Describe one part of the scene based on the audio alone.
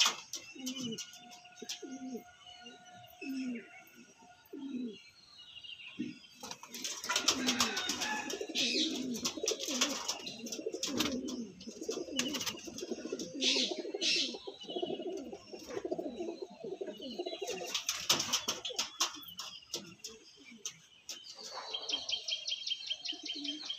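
A pigeon coos softly close by.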